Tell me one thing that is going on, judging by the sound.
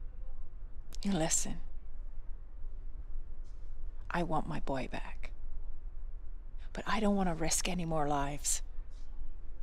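A woman speaks quietly and firmly.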